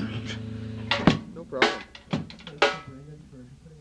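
A drum kit is struck in a few loud hits.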